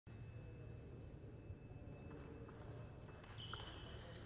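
A ping-pong ball clicks back and forth on paddles and table.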